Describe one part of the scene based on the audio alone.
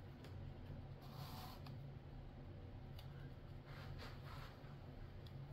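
A brush dabs and scrapes softly against a plastic palette.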